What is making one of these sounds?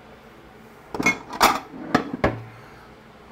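Dishes clink as a cupboard is searched.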